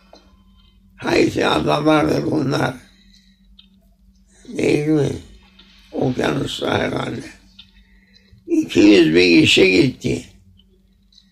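An elderly man speaks calmly and slowly, close by, in short phrases with pauses.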